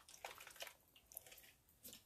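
Liquid pours from a bottle into a pot.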